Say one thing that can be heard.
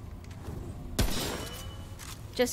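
A game menu closes with a sharp whooshing thud.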